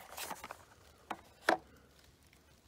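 A small cardboard box is set down on a wooden board with a light tap.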